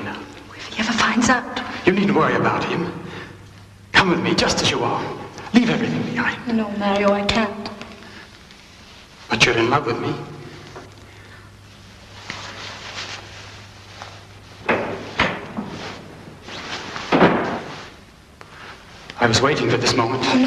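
A woman speaks quietly in reply.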